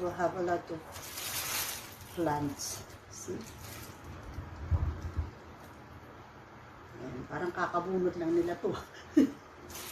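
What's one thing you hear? Plant leaves rustle as a woman handles a plant.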